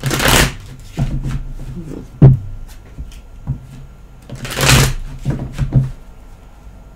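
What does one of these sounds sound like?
Cards tap on a table.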